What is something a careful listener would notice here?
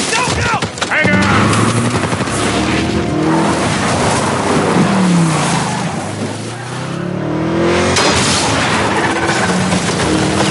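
A car engine roars and revs at speed.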